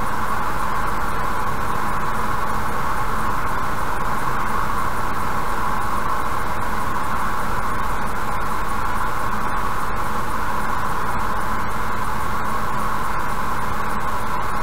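A car drives steadily along a highway, its tyres humming on the road.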